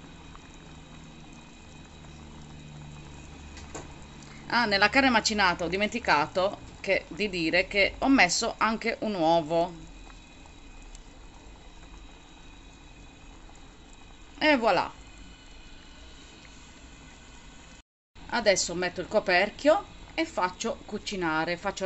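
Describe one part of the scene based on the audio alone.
Broth simmers and bubbles gently in a pan.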